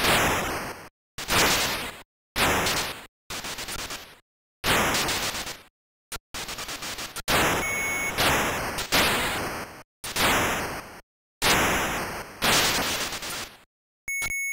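Harsh, buzzy electronic bursts of noise from a retro computer game repeat again and again.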